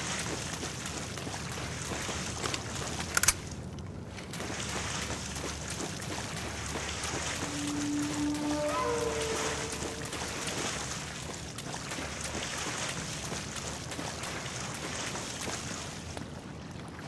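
Footsteps splash loudly through shallow water.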